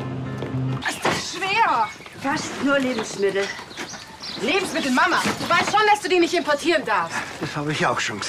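A woman speaks agitatedly, close by.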